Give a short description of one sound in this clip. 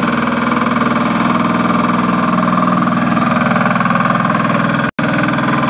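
A roller's engine chugs loudly and steadily close by.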